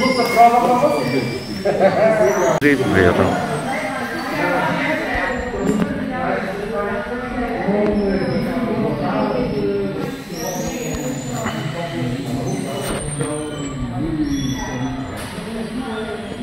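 A crowd of people murmur quietly in the background.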